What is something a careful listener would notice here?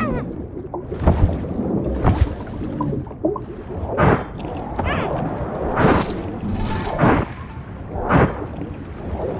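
Heavy muffled thumps strike underwater as a crocodile is fought.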